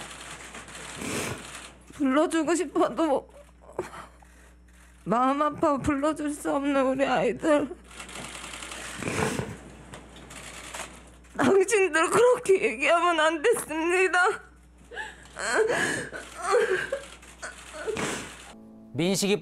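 A young woman sobs and cries.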